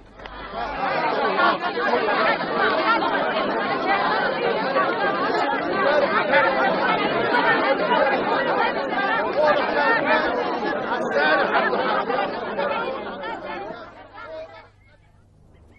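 A large crowd of men and women shouts and clamours loudly and chaotically.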